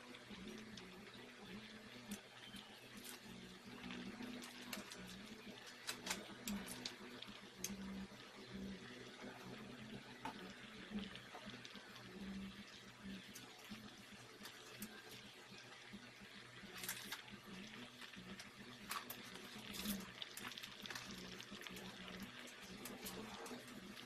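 A pot of soup boils and bubbles steadily.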